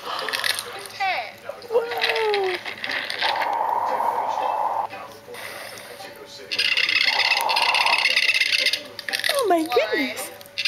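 A baby squeals and coos happily close by.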